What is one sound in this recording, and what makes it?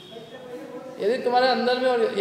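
A man speaks loudly into a microphone, heard through a loudspeaker.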